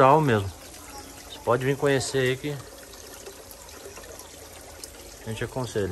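Water trickles from a tap into a full pot.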